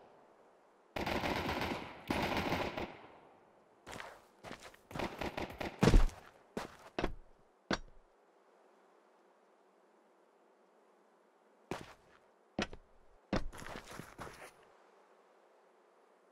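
Footsteps tap on hard stone ground.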